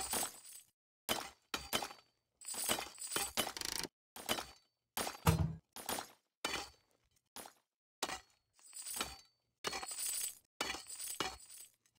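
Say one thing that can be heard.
Pickaxes strike gold ore in quick bursts of clinking hits.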